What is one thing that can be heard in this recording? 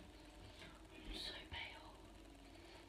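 A makeup brush brushes softly against skin.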